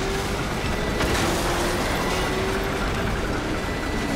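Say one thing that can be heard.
An explosion booms and crackles with fire.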